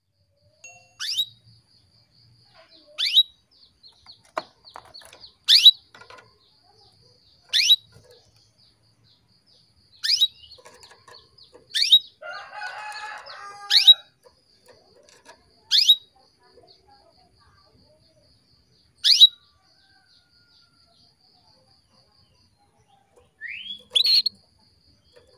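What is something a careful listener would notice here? A small bird gives sharp, short chirps, repeating every couple of seconds.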